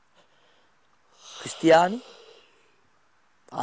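A man yawns loudly with a long groan.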